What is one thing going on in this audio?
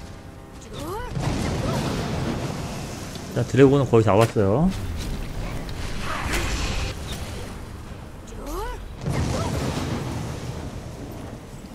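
An icy magical blast whooshes and crackles loudly.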